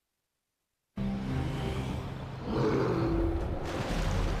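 A shark splashes out of the water and dives back in.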